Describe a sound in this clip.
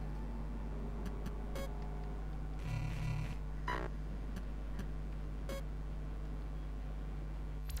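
Short electronic beeps and clicks sound as a phone menu is browsed.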